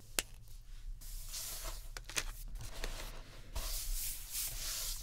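Hands rub and slide across a page of paper.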